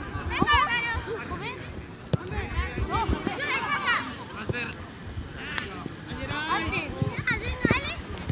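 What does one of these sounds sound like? Children shout and call to each other outdoors.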